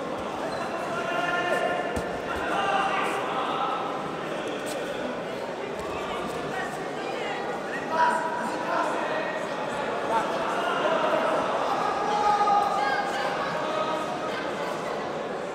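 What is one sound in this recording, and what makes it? Many voices chatter and call out in a large echoing hall.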